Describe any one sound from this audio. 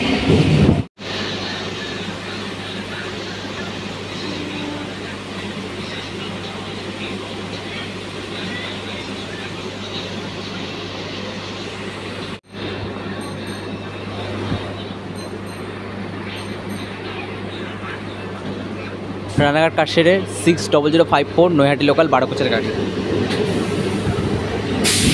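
A train rumbles steadily along the tracks with a low hum.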